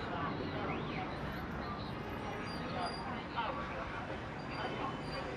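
Men and women chatter nearby in a passing crowd.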